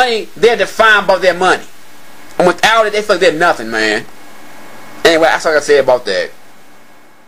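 A young man talks calmly into a phone up close.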